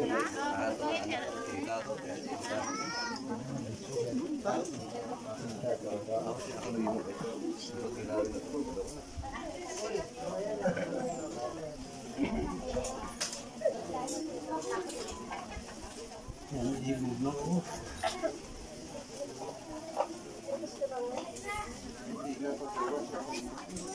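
A large crowd of men, women and children chatters nearby outdoors.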